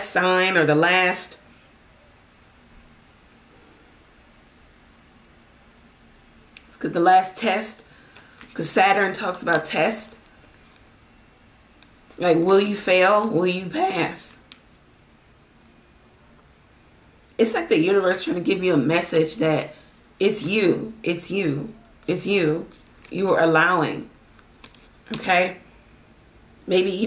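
A woman speaks calmly and closely in short phrases.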